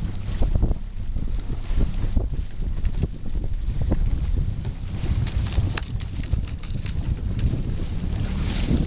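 Oars dip and splash in the water in a steady rhythm.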